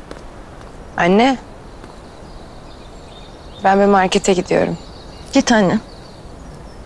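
A young woman calls out and speaks with feeling, close by.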